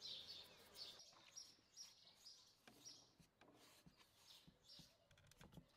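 Hands rub and stir dry flour with a soft rustle.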